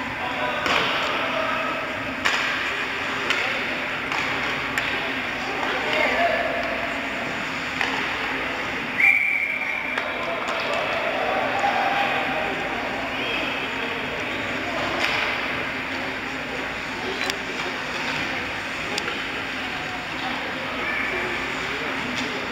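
Skates scrape and hiss across the ice in a large echoing rink.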